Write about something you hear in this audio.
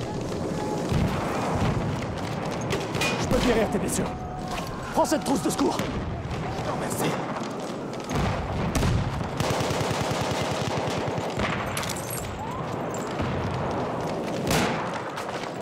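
Gunshots ring out loudly in an echoing tunnel.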